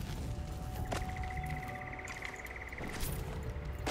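A bright, shimmering chime rings as items are picked up.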